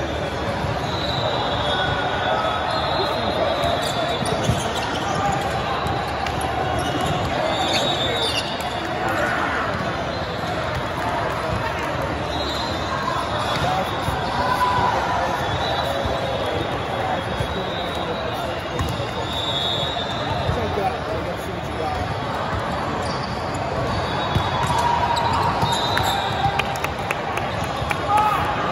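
A crowd of voices murmurs and echoes through a large hall.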